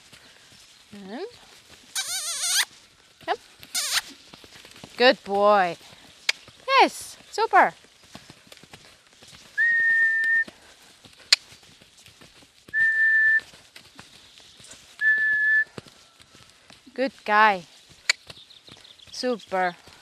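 A young woman calls out to a horse in short, rising and falling cries.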